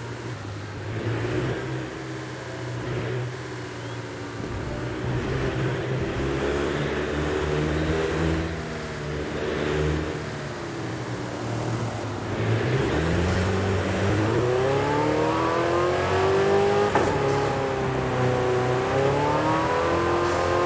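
A sports car engine revs and rumbles at low speed, then roars as it speeds up.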